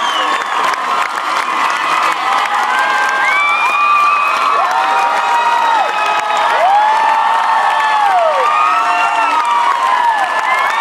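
Live music plays loudly over speakers in a large echoing hall.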